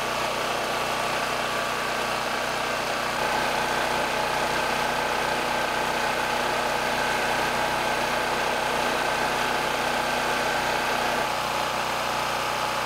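A petrol generator engine runs with a steady, loud drone.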